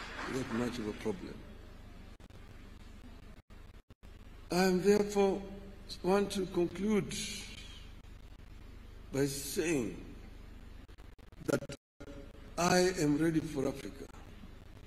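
A man speaks slowly and formally through a microphone, with pauses between phrases.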